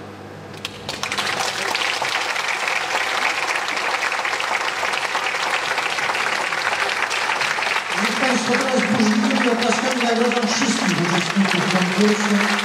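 A large audience claps and cheers in a big echoing hall.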